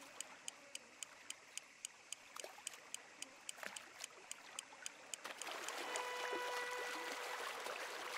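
Water laps gently at the shore.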